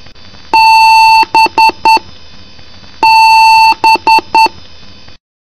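A computer speaker sounds one long beep followed by three short beeps, twice.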